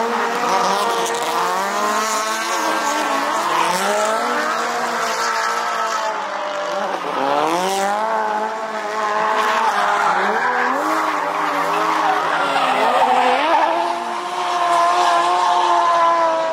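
Tyres screech as cars slide through a bend.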